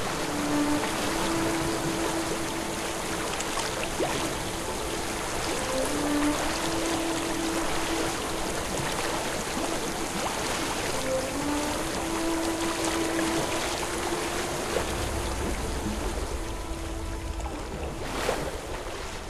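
Water pours down in a steady, rushing waterfall.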